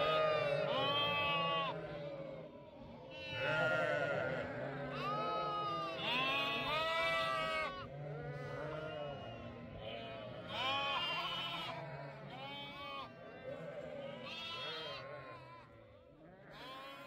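Many sheep and lambs bleat loudly, their calls overlapping.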